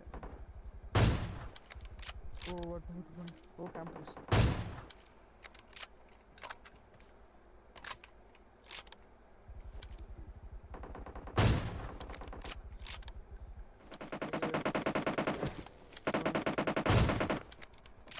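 A rifle fires loud single shots that echo.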